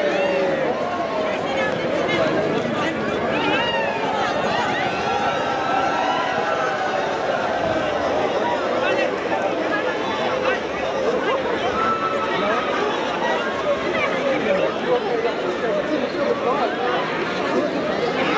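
Young people cheer and whoop with excitement.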